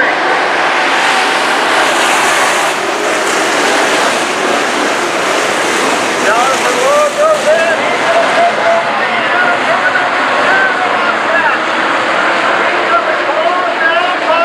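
Many race car engines roar loudly around a dirt track outdoors.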